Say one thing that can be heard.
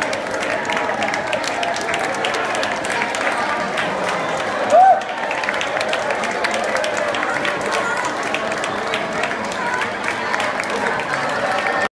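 A large crowd of people claps in a steady rhythm.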